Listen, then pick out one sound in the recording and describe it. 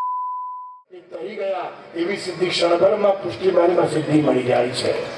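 A man speaks with animation through a microphone and loudspeaker.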